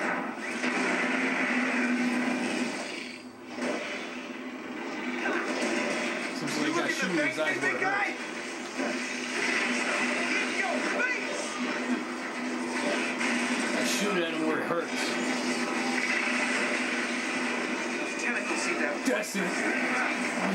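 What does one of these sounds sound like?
Video game music and effects play through a television speaker.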